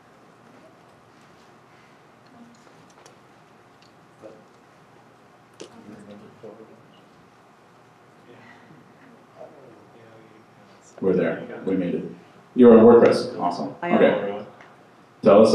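A man speaks into a microphone through loudspeakers in a large echoing hall, with quiet pauses.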